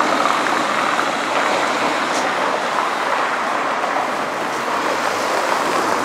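A van drives past close by.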